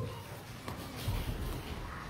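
Children's footsteps thump across a wooden stage.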